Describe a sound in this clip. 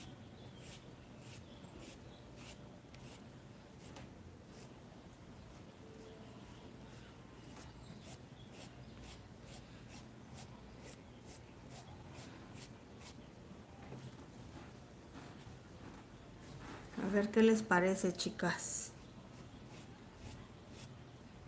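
A brush dabs and scrapes softly on cloth.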